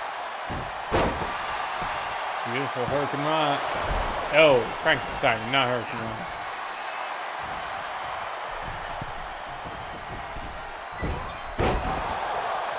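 A body slams down hard onto a wrestling ring mat.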